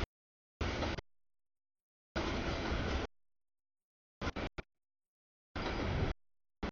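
A freight train rumbles and clatters past.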